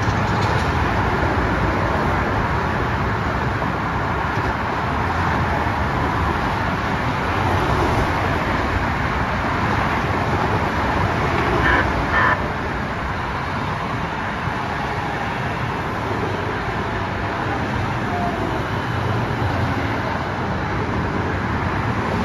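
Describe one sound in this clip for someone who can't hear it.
Traffic roars steadily on a nearby highway.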